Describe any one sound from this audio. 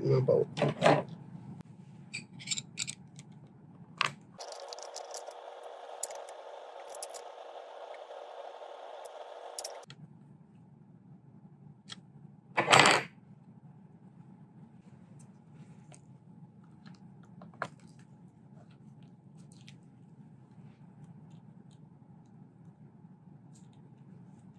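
Metal tools click and tap against a rifle's parts.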